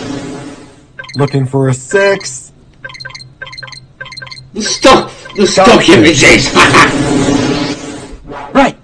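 A young man laughs and talks close to a microphone.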